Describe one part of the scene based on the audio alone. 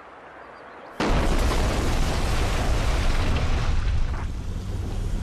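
A building collapses in a loud blast with a long rumble.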